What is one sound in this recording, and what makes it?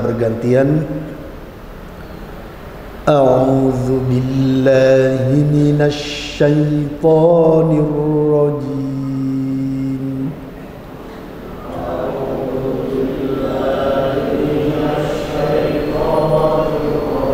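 An elderly man speaks slowly into a microphone, drawing out his words in a chanting tone.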